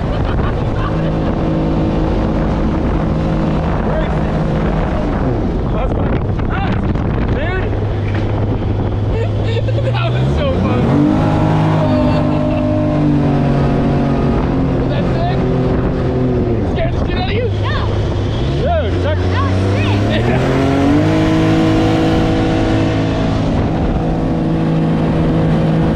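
A boat engine drones loudly, revving up and down.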